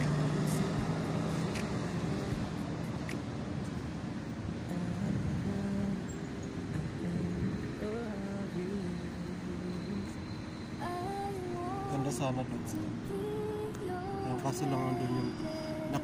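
Footsteps tap on paving stones outdoors.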